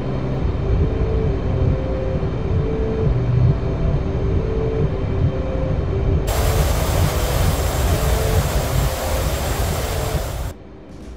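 A cockpit warning tone beeps in short repeated pulses.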